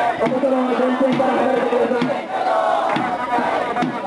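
A man shouts through a megaphone close by.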